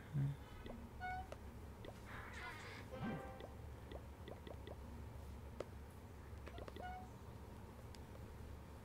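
Short electronic game blips sound.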